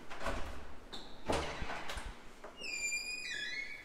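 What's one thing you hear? A door latch clicks as a door is pushed open.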